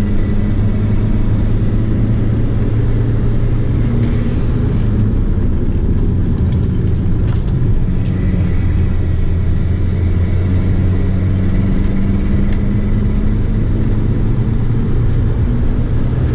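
Tyres hum and rumble on the track.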